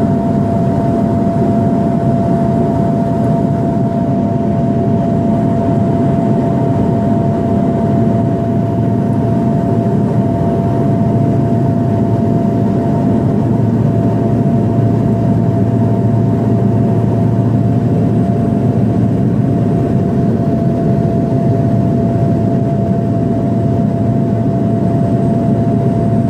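Wind rushes past the plane.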